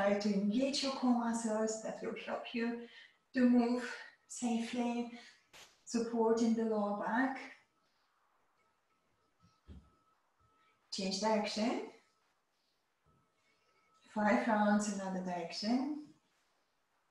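A woman speaks calmly and clearly into a close microphone, giving instructions in short phrases.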